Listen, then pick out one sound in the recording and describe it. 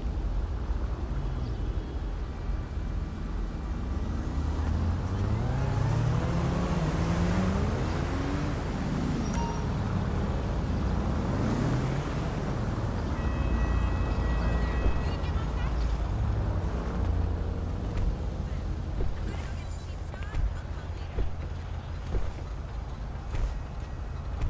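A sports car engine idles and revs up and down.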